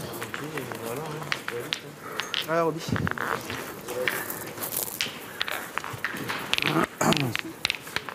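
Metal balls thud and clack against each other on gravel.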